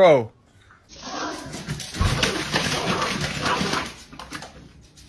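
Paws scamper and scatter paper on a hard floor.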